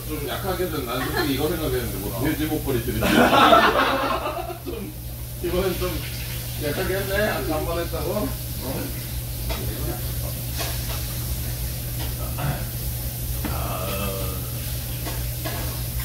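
Dishes and utensils clink.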